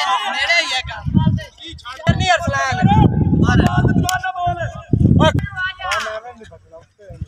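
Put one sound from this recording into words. Young men talk and call out loudly outdoors.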